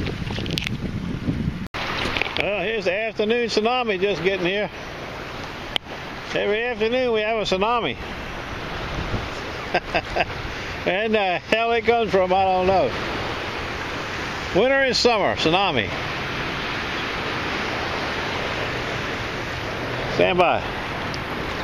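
Small waves lap and splash close by.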